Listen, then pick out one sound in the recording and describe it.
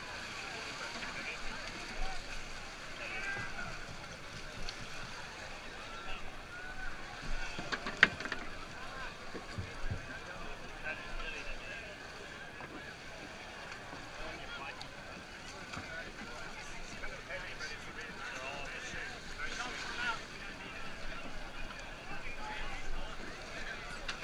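Shallow water splashes around wading feet.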